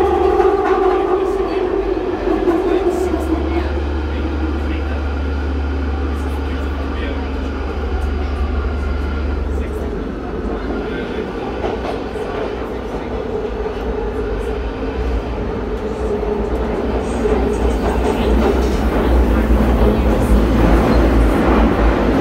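A train rumbles and roars along a tunnel.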